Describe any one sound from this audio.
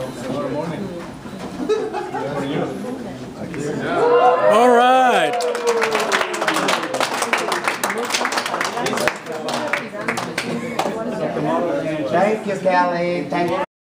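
A group of adults talk and chatter around the recorder.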